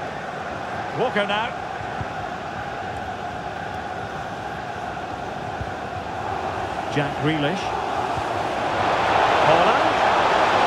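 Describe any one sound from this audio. A large stadium crowd roars steadily, swelling louder toward the end.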